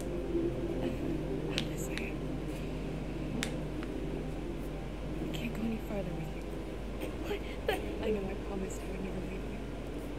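A young woman speaks softly and warmly.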